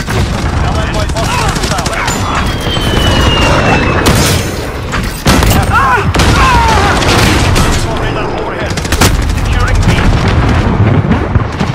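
Automatic gunfire rattles in rapid bursts.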